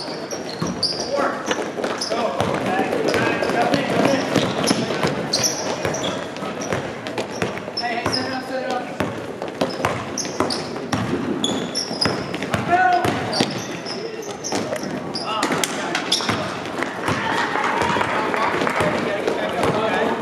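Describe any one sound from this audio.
Young players shout and call out across an echoing gym.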